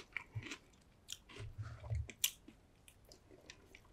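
A man sips through a straw, close to a microphone.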